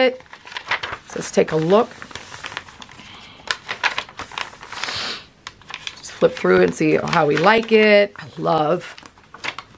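Stiff paper pages rustle and crinkle as they are turned and pressed flat.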